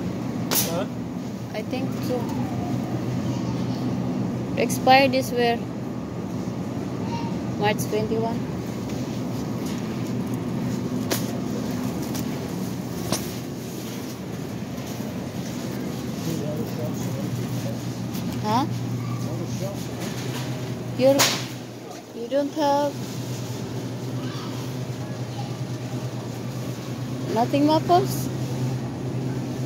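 Refrigerator cases hum steadily.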